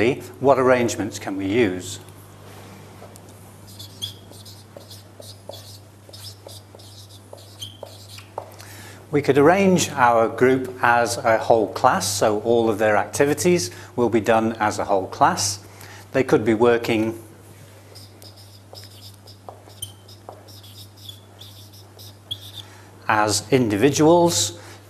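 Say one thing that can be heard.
A middle-aged man speaks calmly into a clip-on microphone.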